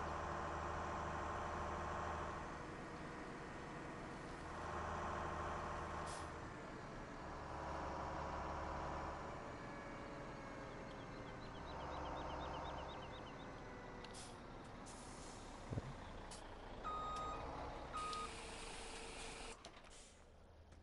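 A truck engine hums steadily as the truck drives along.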